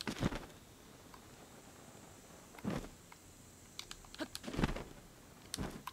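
A paraglider flaps in the wind.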